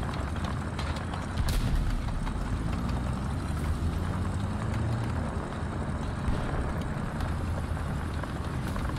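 A tank engine rumbles deeply as the tank drives.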